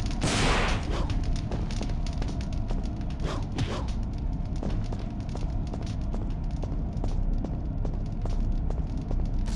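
Footsteps tap on a stone floor in an echoing hall.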